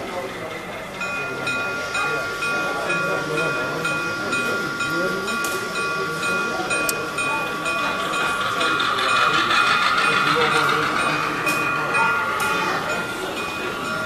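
A model locomotive bell rings steadily.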